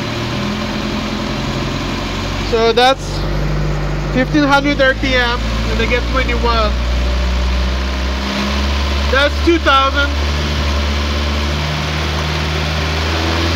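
An engine idles with a steady low hum close by.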